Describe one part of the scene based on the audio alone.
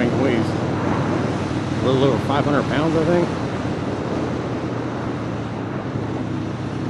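Wind rushes past the motorcycle.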